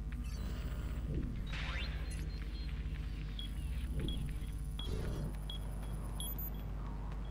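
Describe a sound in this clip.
Quick footsteps patter on a hard floor.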